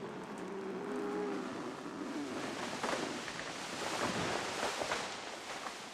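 A large tree creaks and crashes down through branches.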